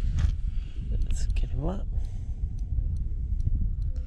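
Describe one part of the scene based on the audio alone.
A fishing reel whirs as its handle is wound.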